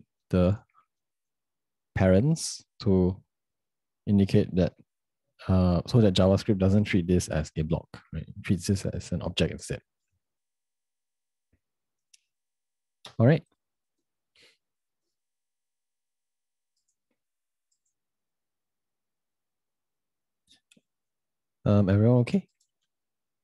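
A young man speaks calmly into a close microphone, in short bursts with long pauses.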